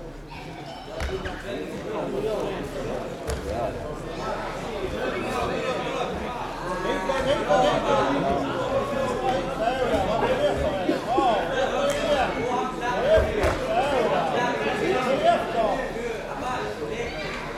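Many voices of young men and women shout and cheer in a large echoing hall.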